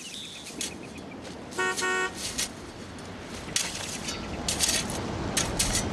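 Rakes scrape through dry brush.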